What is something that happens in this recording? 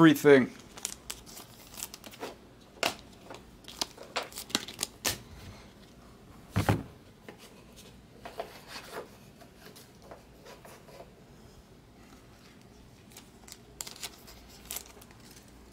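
Plastic card sleeves rustle and click.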